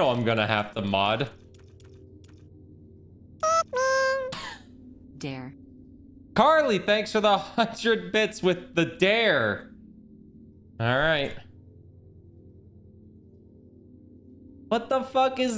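A young man talks casually and with animation into a close microphone, in short bursts with pauses.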